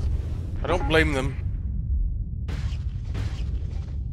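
A spaceship explosion bursts with a loud blast.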